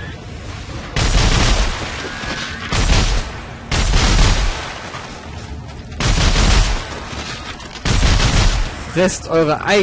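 A gun fires in short, loud bursts.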